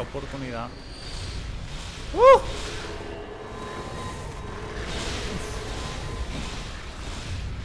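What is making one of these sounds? A magic beam zaps with a hissing crackle.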